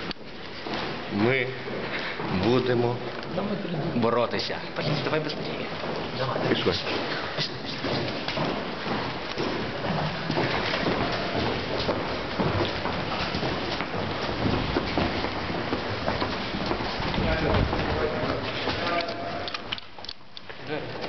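Young men talk with animation close by.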